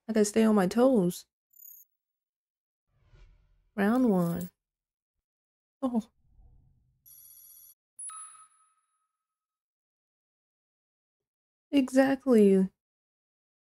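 A young woman speaks with animation into a microphone, in short bursts.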